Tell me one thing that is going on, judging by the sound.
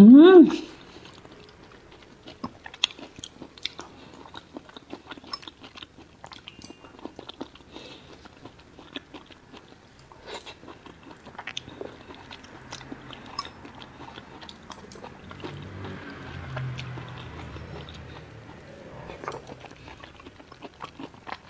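A young woman chews and slurps soft food close to a microphone.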